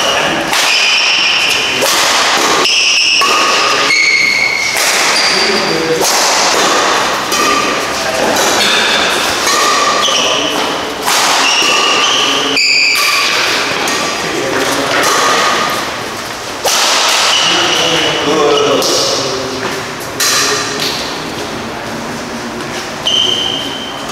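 Rackets smack a shuttlecock back and forth.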